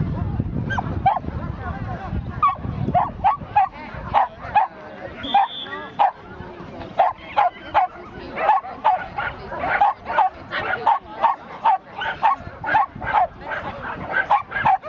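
A man calls out short commands to a dog again and again.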